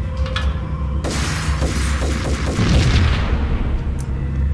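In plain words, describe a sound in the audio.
Rapid gunshots fire and echo.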